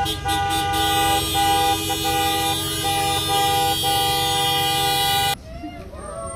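Car horns honk in a long, steady chorus outdoors.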